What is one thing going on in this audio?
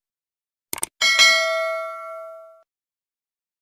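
A bell chimes and rings out.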